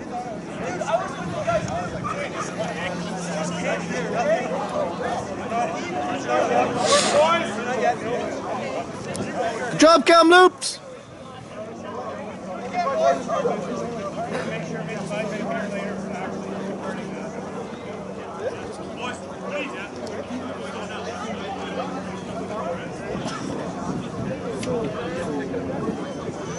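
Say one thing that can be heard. Players call out to each other across an open field in the distance.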